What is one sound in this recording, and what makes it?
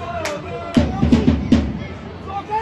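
Fans close by clap their hands.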